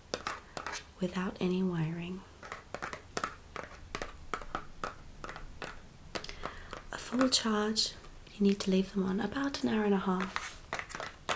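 A young woman speaks close by, calmly and in short bursts.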